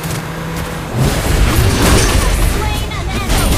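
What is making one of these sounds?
Magic blasts and heavy impacts crash loudly in a fast battle.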